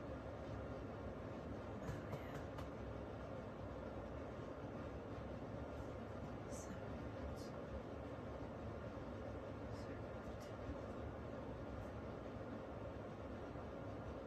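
A woman talks quietly and calmly close by.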